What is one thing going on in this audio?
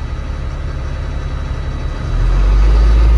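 A truck's diesel engine idles with a deep, throbbing rumble.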